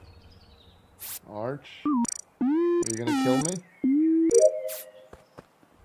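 Bright electronic game tones rise and chime in quick bursts.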